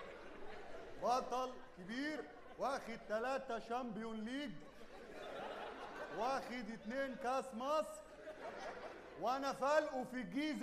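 A man speaks in an exaggerated, sing-song comic voice with animation.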